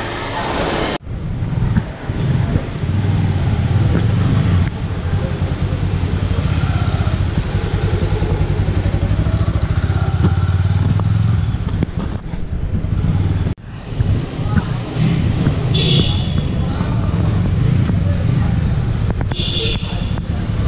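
A motorcycle engine runs with a low, steady rumble.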